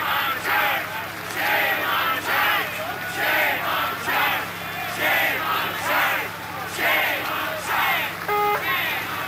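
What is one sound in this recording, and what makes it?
A crowd of protesters chants loudly in rhythm outdoors.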